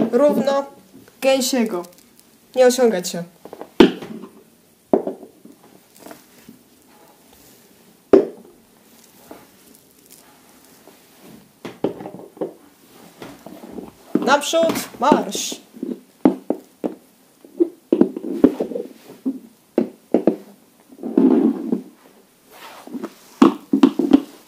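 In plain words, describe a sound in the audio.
Plastic toy horses tap and knock onto a wooden floor.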